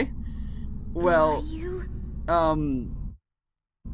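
A young girl calls out softly and questioningly, close by.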